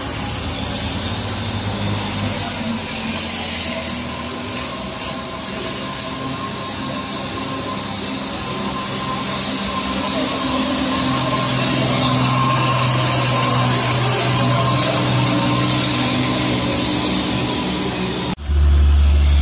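A truck engine labours loudly as it climbs uphill.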